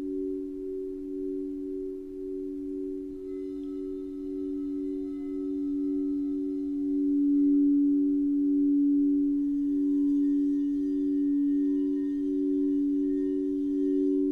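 Crystal singing bowls ring with a steady, humming tone that swells and wavers.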